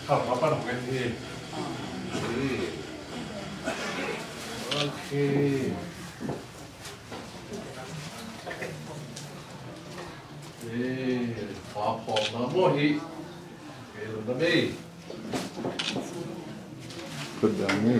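A man speaks calmly nearby in a room with some echo.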